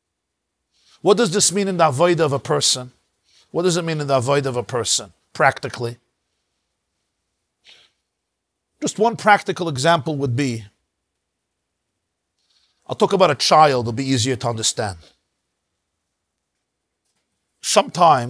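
A middle-aged man speaks calmly into a close microphone, in short phrases with pauses.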